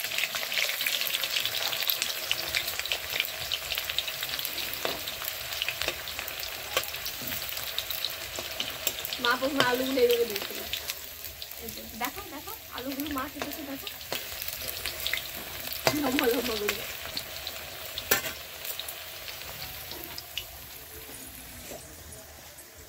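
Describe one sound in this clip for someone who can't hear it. Oil sizzles and hisses in a frying pan.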